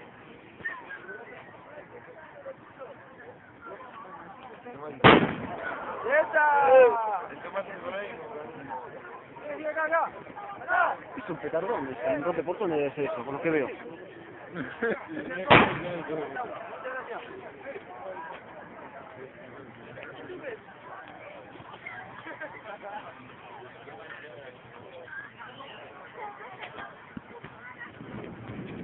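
A crowd of people chatters and shouts nearby outdoors.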